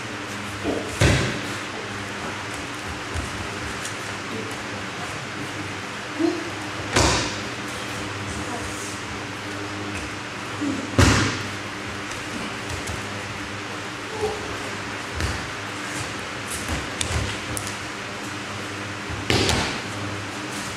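Bodies thump heavily onto a padded mat as people tumble.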